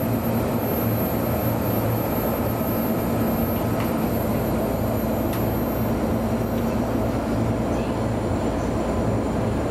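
A train's motor hums steadily as the train rolls along the tracks.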